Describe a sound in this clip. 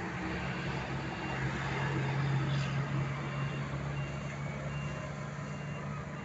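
A diesel box truck passes by.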